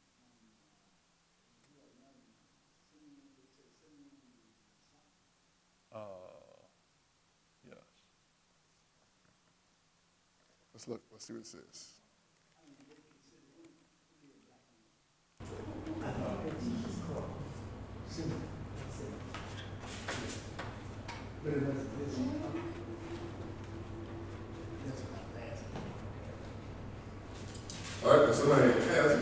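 A man reads aloud slowly through a microphone in an echoing hall.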